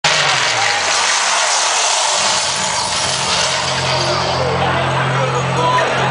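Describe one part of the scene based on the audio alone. A large crowd cheers and shouts close by.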